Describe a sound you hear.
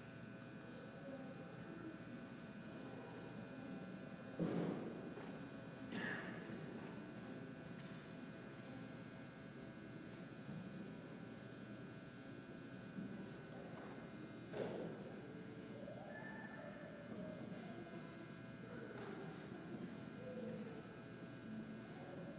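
A man speaks calmly at a distance in a large echoing hall.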